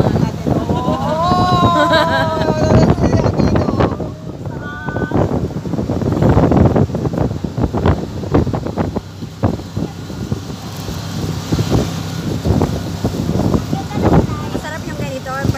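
Wind buffets loudly against the recording as it moves along outdoors.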